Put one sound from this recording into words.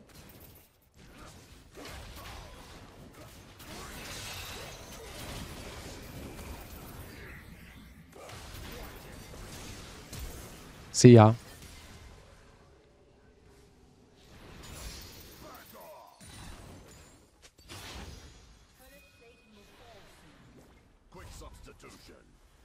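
Video game spells whoosh and crackle in a fight.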